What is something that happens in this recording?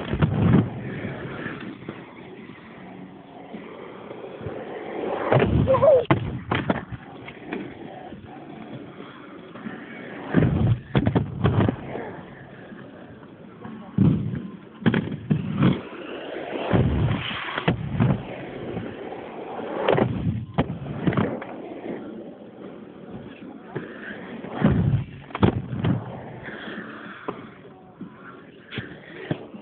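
Skateboard wheels roll and rumble over concrete close by.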